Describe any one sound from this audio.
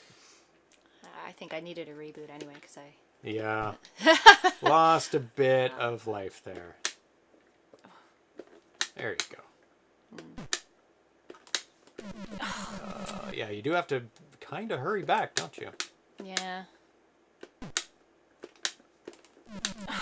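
A woman talks and laughs into a microphone.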